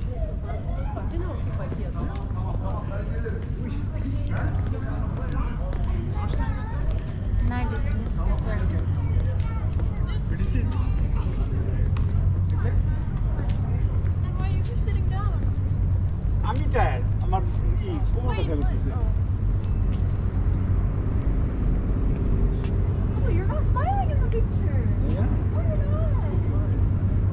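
Men and women chat quietly nearby.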